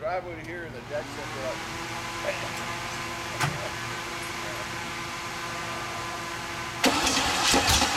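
A car engine starts and idles with a steady rumble.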